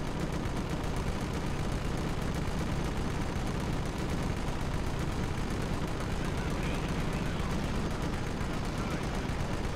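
Tank engines rumble low and steadily.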